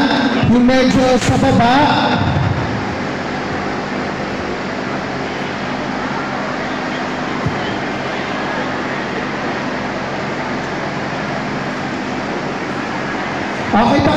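A large crowd of women chatters in a big echoing hall.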